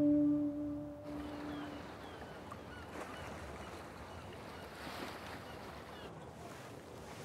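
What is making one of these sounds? Water laps gently against the shore.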